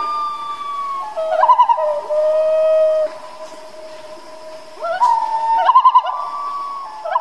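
Water birds honk and call across calm water.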